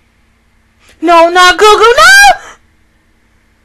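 A young woman laughs loudly and shrilly, close to a microphone.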